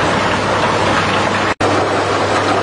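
Water gushes and splashes loudly from a pipe.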